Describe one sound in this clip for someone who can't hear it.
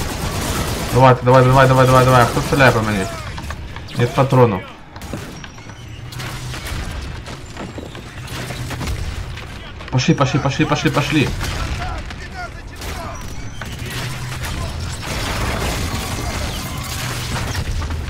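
Rapid gunfire bursts from a game.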